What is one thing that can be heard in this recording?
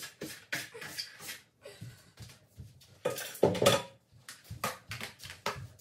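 A broom handle knocks and scrapes against the floor.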